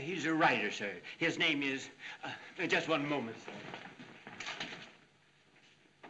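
A man speaks firmly.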